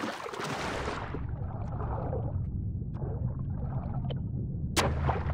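A muffled underwater rumble drones low and steady.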